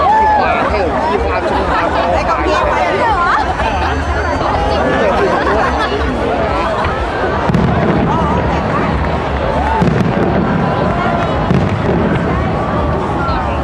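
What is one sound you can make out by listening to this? Fireworks boom and crackle overhead.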